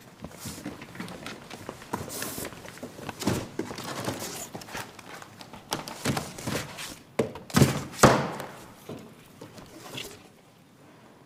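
Cardboard boxes and papers rustle and thump as they are handled.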